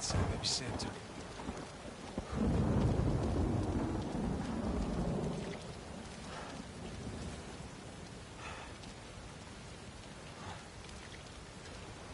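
Waves crash and roar nearby.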